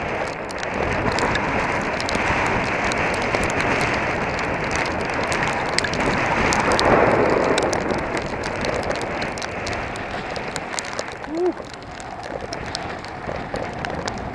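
Raindrops tap sharply close by.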